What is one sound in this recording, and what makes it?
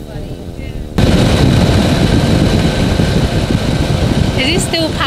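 Wind roars loudly past the microphone.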